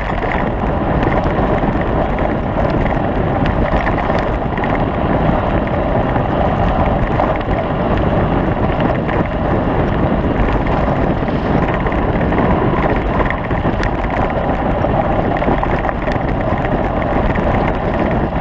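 Tyres roll and rattle over a rough dirt track.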